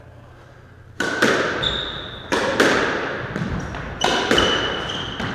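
A squash ball smacks hard against the walls, ringing with echo.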